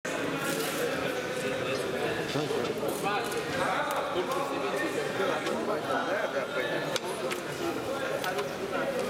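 A crowd of men chatters nearby in a large echoing hall.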